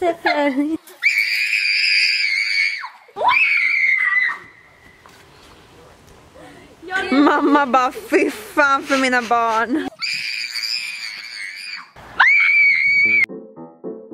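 Girls scream loudly outdoors.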